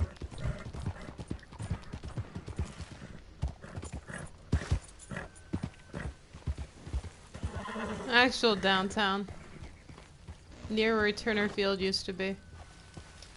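A horse's hooves thud at a gallop on dry ground.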